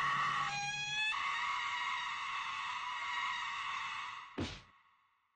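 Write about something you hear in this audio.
A young woman wails and sobs loudly.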